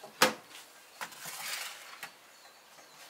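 A metal pan scrapes on a stove.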